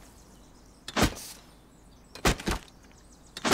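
A tool strikes a rock with sharp knocks.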